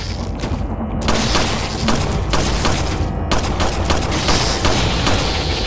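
A pistol fires repeated sharp shots.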